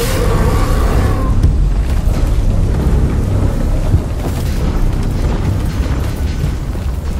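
A deep rumbling roar fills a large echoing space.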